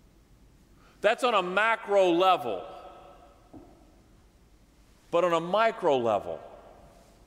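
A middle-aged man preaches with animation through a microphone in a large echoing hall.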